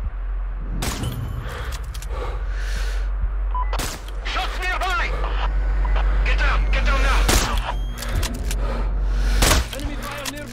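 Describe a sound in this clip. Guns fire in sharp, loud cracks.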